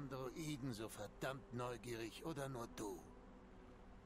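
An older man speaks in a gruff, low voice close by.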